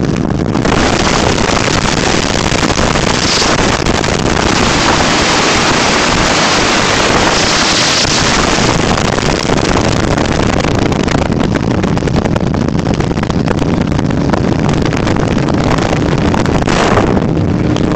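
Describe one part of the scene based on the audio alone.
A dirt bike engine drones steadily as the bike rides along.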